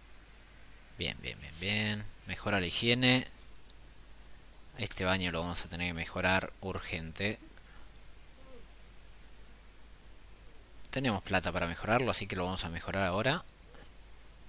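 A young man talks calmly into a microphone, in short bursts with pauses.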